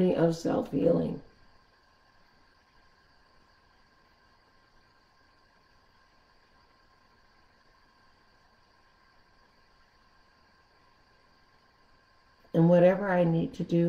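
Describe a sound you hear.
An elderly woman speaks calmly and slowly, close to a microphone.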